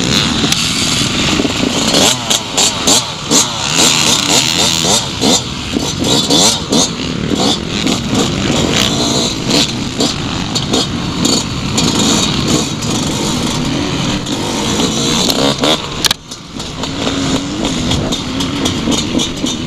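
A dirt bike engine revs and roars up close.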